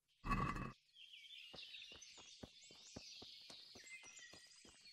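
Footsteps tread softly on a forest floor.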